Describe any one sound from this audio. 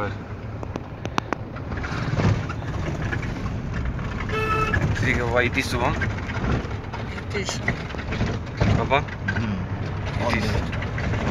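A vehicle engine rumbles steadily from inside the cabin.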